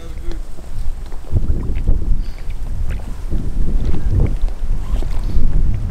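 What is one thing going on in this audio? Water splashes as a fish is let go.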